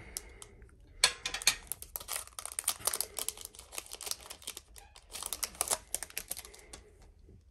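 Plastic wrapping crinkles and rustles as hands pull at it.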